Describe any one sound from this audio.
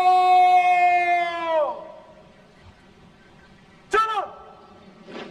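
A man shouts a long drawn-out command that echoes outdoors.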